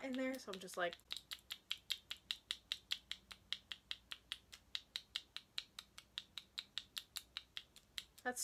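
A lipstick tube clicks rapidly as it is twisted.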